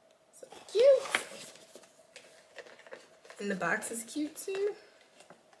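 A cardboard box rustles in hands.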